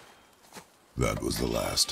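A man speaks in a deep, gruff voice close by.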